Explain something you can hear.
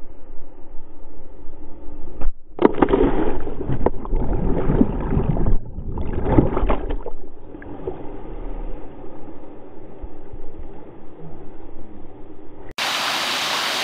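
Water rushes and splashes loudly, very close by.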